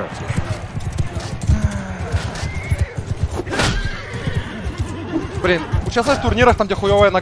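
Horse hooves thud rapidly on sand.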